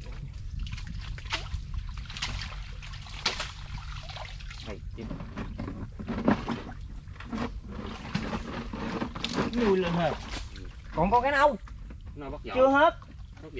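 Wet mud squelches and sucks as hands dig into it.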